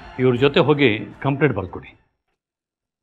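A middle-aged man speaks firmly, close by.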